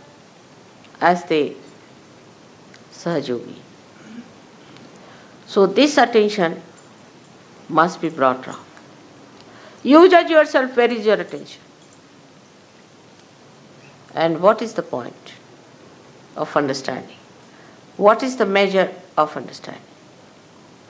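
An elderly woman speaks calmly into a close microphone, in short phrases with pauses.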